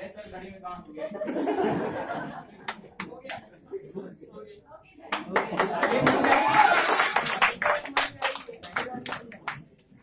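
A crowd cheers and claps loudly in a room.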